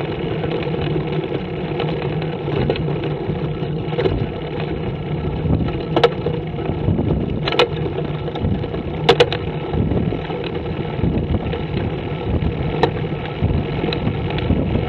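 Small wheels roll steadily over rough asphalt.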